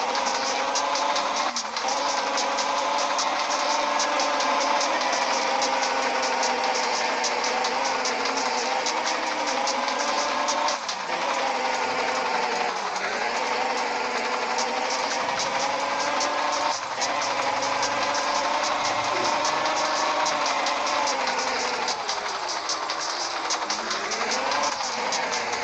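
A car engine drones steadily, its pitch rising and falling slightly.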